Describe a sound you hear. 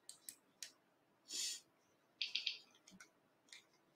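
Mahjong tiles clack as they are laid down.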